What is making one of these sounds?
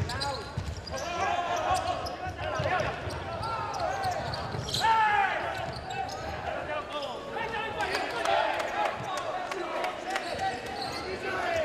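Sneakers squeak sharply on a hard indoor court.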